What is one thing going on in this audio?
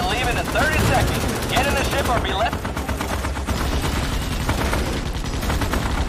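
Rapid gunfire rattles in a game.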